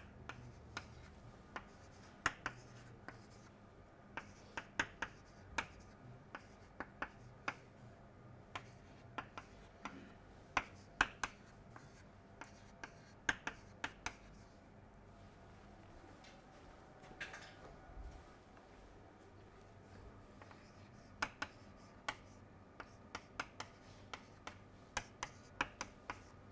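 Chalk taps and clicks sharply against a board.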